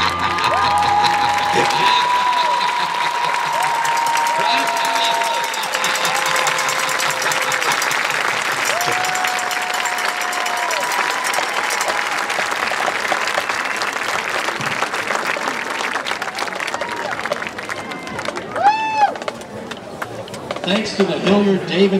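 A large crowd cheers loudly outdoors.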